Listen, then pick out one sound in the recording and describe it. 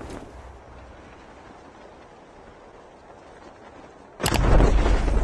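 Wind rushes steadily during a parachute descent.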